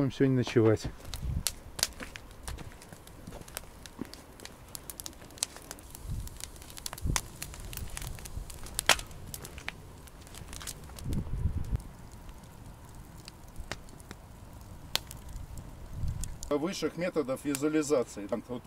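A campfire crackles and pops.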